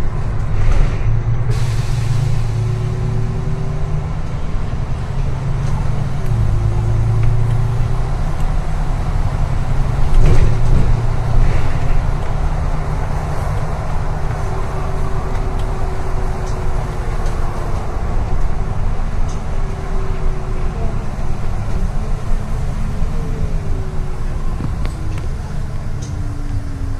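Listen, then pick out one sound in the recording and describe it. Tyres rumble on the road beneath a bus.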